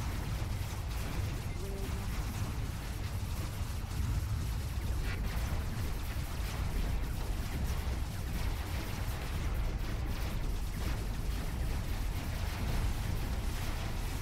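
Laser weapons fire in short bursts.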